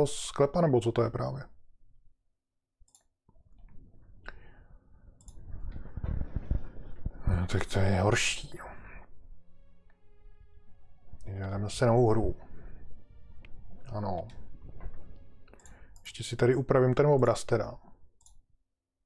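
A middle-aged man talks calmly close to a microphone.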